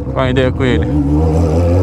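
An inline-four sport motorcycle with a straight-pipe exhaust revs in quick bursts.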